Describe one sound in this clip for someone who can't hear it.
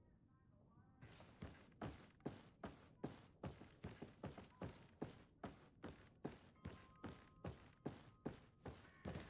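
Heavy footsteps thud steadily on wooden floorboards.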